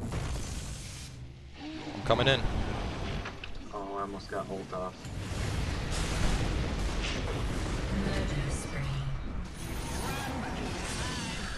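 Spell effects whoosh and crackle amid clashing battle sounds.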